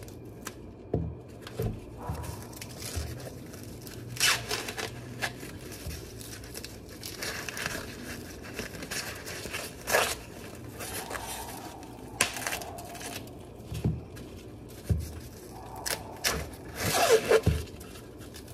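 Husks and ears of corn thump softly on a board.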